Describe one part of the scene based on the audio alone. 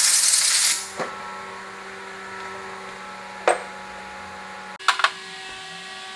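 Small metal parts clink and click against each other in someone's hands.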